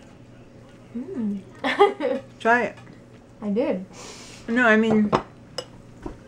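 A young woman close by makes expressive sounds of delight while tasting food.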